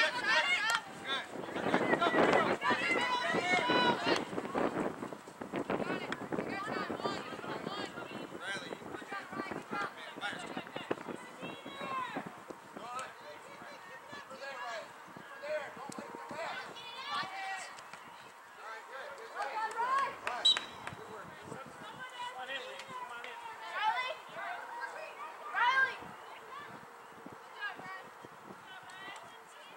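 Young women and men shout and call out across an open field outdoors.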